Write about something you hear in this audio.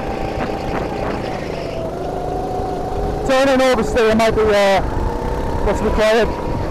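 A racing kart engine revs up and down close by.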